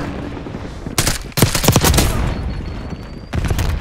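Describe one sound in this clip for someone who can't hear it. A gun fires a rapid burst of loud shots.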